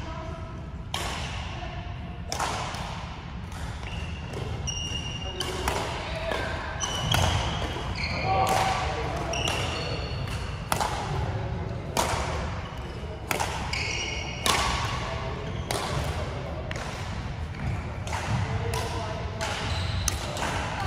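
Shuttlecocks are struck with sharp racket pops in a large echoing hall.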